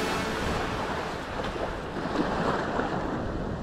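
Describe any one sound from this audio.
Bare feet pad softly on wet sand.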